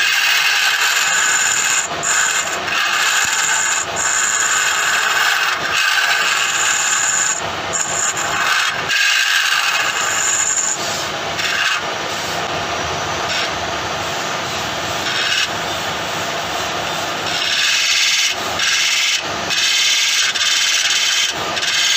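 A wood lathe whirs steadily.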